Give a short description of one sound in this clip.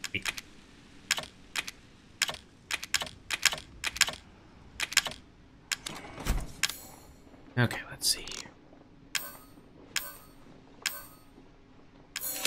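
Short game menu clicks and beeps sound in quick succession.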